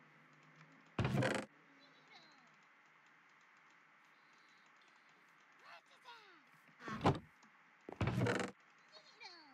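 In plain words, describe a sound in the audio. A wooden chest creaks open and bangs shut.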